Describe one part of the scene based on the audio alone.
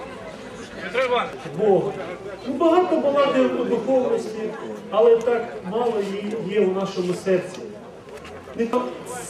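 A man chants a prayer in a deep voice.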